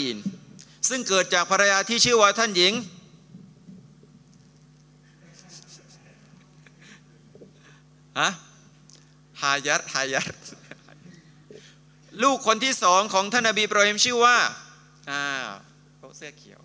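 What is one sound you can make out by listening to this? A middle-aged man speaks with animation into a microphone, with pauses between phrases.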